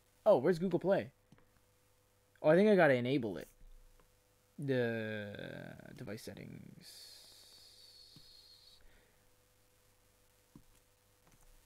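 A stylus taps lightly on a tablet's glass.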